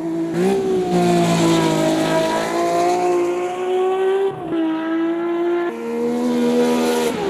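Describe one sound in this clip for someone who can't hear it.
A racing car engine roars loudly at high revs, shifting gears.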